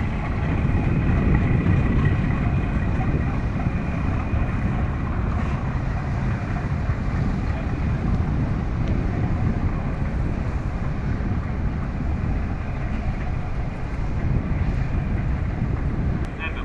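Water churns and splashes behind a moving boat.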